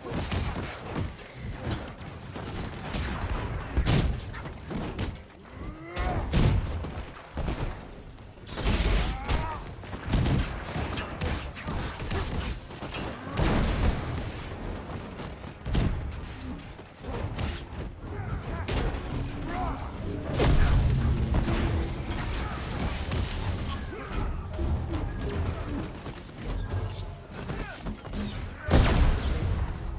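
Weapons clash and strike in a heated fight.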